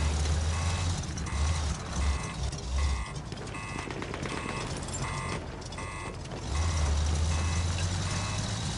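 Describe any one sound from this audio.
A tank engine rumbles.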